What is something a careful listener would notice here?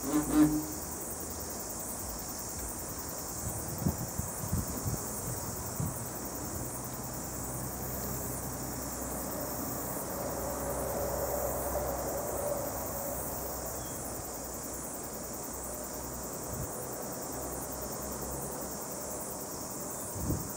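Flies buzz close by.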